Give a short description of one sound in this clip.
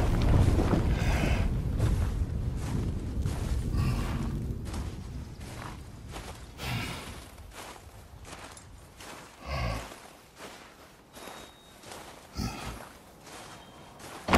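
Heavy footsteps crunch through snow.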